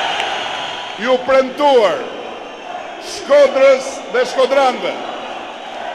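A man speaks with emphasis through a microphone.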